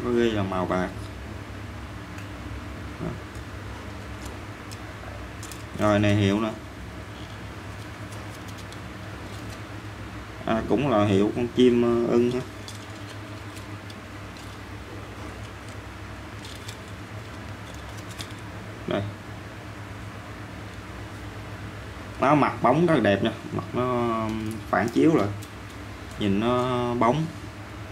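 Metal sunglasses click softly as they are handled.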